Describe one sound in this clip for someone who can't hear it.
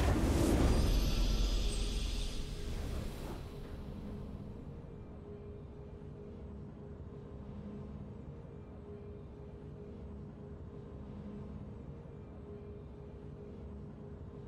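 A triumphant game fanfare bursts out loudly, then fades into a soft, steady hum of music.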